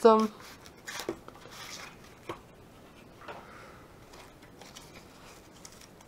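A plastic sleeve crinkles as it is handled.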